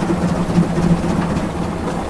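A steam locomotive rumbles and puffs nearby.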